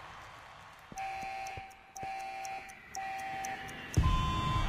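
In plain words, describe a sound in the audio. Video game countdown beeps sound about once a second.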